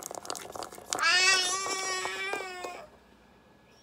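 A toy tablet plays a bright electronic tune.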